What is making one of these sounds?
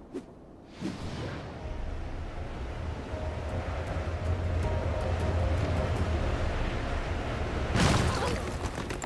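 Wind rushes loudly during a fast dive through the air.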